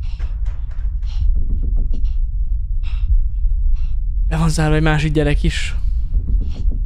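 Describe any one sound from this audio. A young man talks animatedly and close into a microphone.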